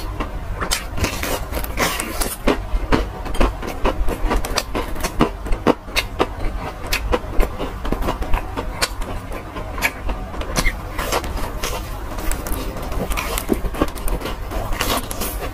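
Crispy fried chicken crunches loudly as a young man bites into it.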